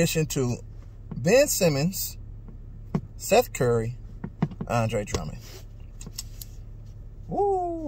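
A man speaks calmly and close up, in short phrases.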